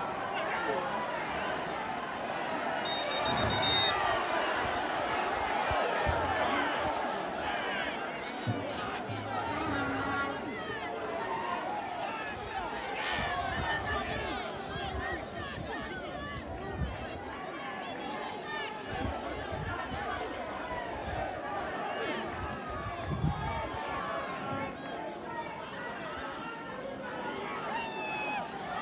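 Men shout and call to each other across an open football pitch in the distance.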